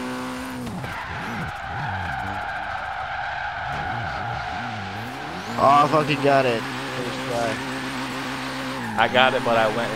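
Tyres screech while a car drifts.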